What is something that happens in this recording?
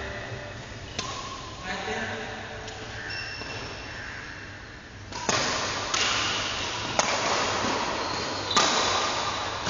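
A shuttlecock is struck with a racket, with sharp pops.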